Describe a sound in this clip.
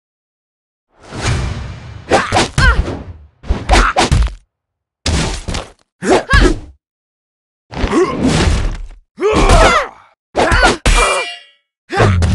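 Swords clash and blows land in a fight.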